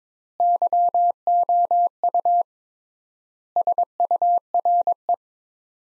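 Morse code beeps tap out in quick bursts of short and long tones.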